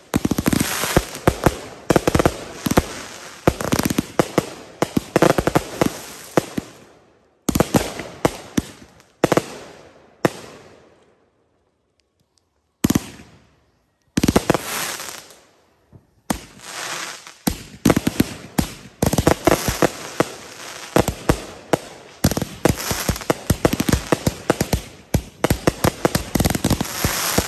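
A firework fountain hisses loudly.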